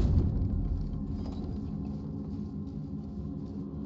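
Armoured footsteps thud on wooden planks.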